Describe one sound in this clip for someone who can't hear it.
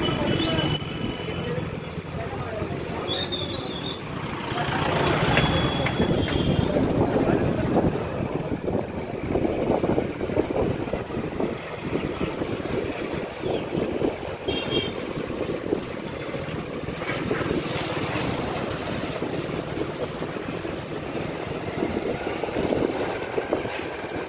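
Wind buffets loudly, as when heard outdoors while moving.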